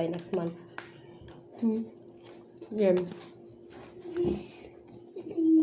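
A woman chews and slurps food close by.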